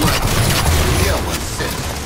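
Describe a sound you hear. Rapid gunfire bursts close by.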